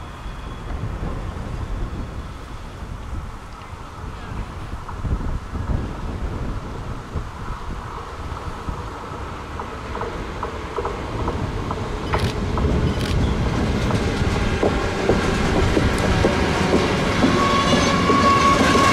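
A freight train approaches and rumbles past close by, growing louder.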